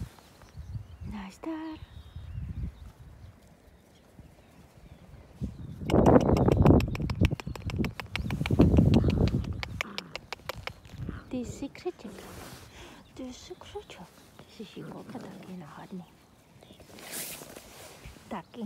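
Puppies yip and whimper softly.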